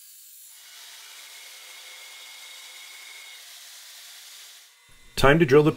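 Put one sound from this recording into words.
A grinder grinds against metal with a faint hiss.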